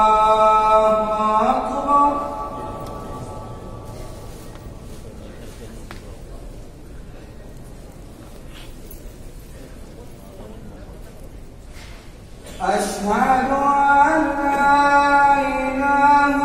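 A man chants a long, drawn-out call through a loudspeaker, echoing through a large hall.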